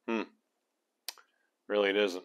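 Small metal parts click against each other.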